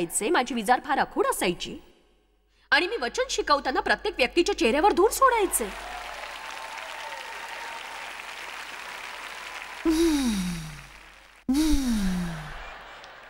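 A middle-aged woman speaks with animation through a microphone in a large hall.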